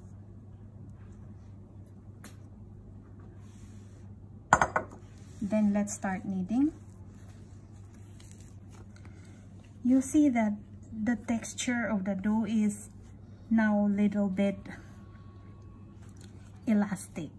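Hands knead soft dough with quiet squishing and pressing.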